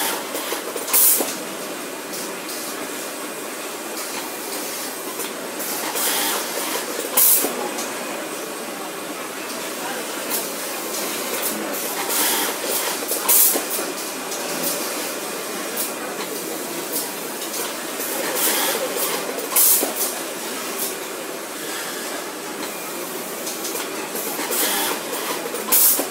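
An automatic sewing machine clamp snaps shut with a sharp clack.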